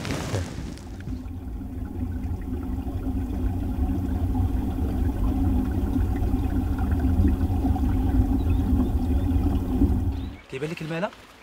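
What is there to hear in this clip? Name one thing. Water rushes and gurgles steadily deep inside a hole in the rock.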